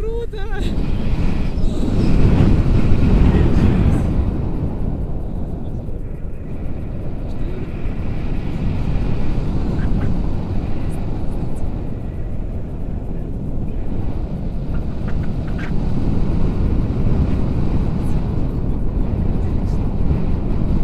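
Strong wind roars and buffets against a microphone.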